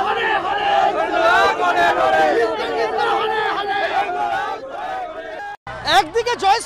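A crowd of men talks and chants loudly outdoors.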